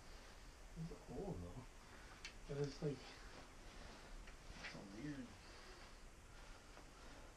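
Fabric rustles as a jacket is handled.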